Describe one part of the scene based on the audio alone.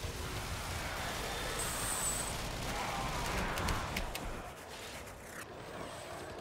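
Energy blasts burst and crackle.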